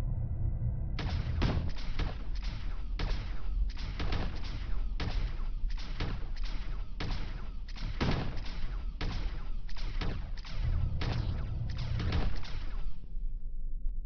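Guns fire in rapid, repeated bursts.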